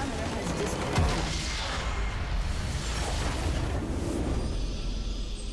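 A large explosion booms and rumbles.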